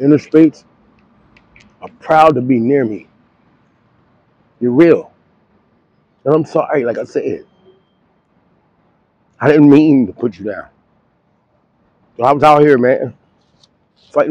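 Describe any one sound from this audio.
An elderly man talks calmly into a close microphone, in short bursts with pauses.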